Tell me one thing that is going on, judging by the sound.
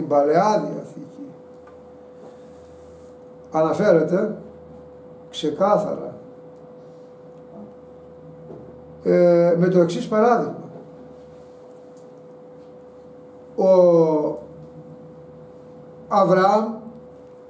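An elderly man speaks slowly and emphatically in short bursts, close to a microphone, with long pauses.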